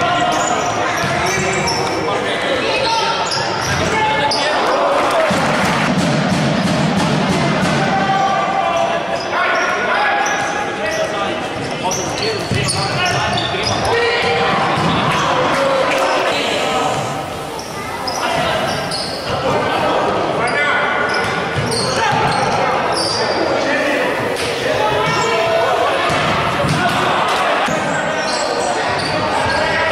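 Sneakers squeak on a hard indoor floor.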